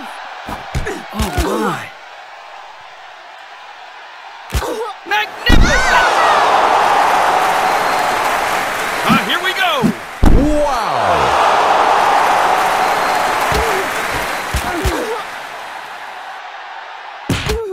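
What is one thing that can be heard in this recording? Punches and kicks land with sharp thuds.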